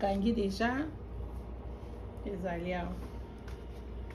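Leaf wrappings rustle and crinkle in hands.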